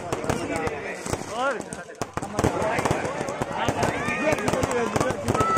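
Fireworks whistle as they shoot up.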